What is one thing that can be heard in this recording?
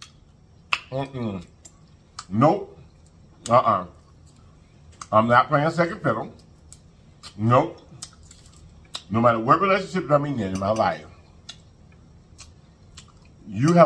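A man chews food with wet, smacking sounds close to a microphone.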